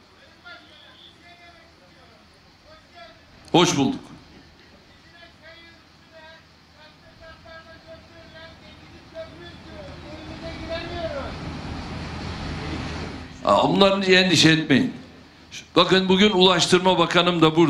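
An older man speaks loudly into a microphone over a loudspeaker.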